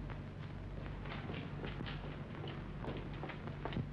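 Footsteps shuffle across a hard floor.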